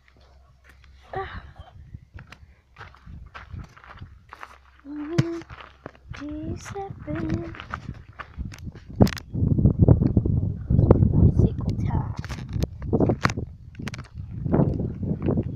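A young girl talks close to a phone's microphone.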